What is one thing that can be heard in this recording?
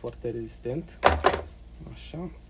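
Small metal parts click and clack in hand.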